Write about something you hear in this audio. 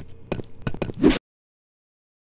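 Glass shatters with a sharp crash.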